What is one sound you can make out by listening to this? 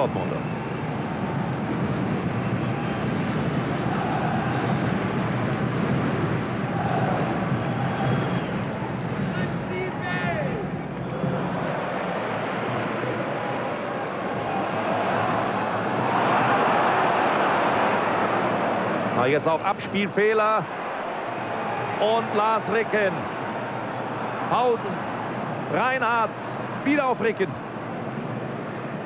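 A large stadium crowd roars and murmurs steadily, heard from afar.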